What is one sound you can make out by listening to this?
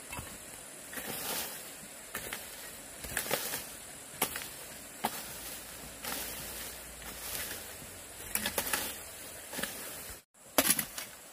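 A hoe scrapes and chops into dry leaves and soil.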